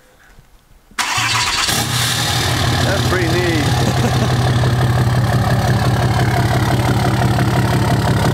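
A pickup truck engine starts and idles with a deep, loud rumble.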